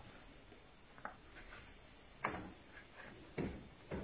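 Objects knock and clatter against metal.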